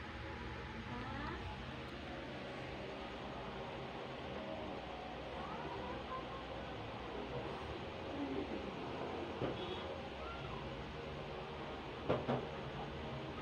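Small kittens mew softly close by.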